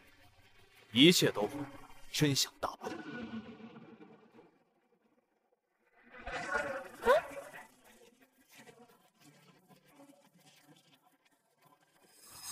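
A young woman speaks sharply up close.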